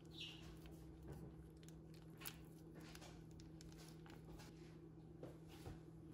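Thick sauce squelches out of a packet.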